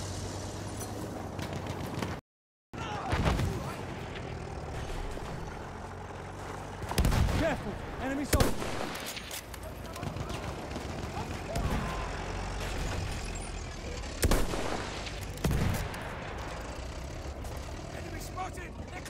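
Distant explosions and gunfire rumble steadily in the background.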